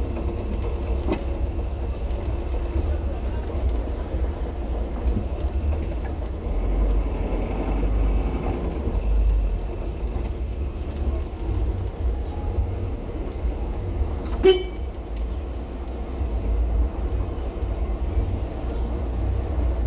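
A car engine hums low and steady from inside a slow-moving car.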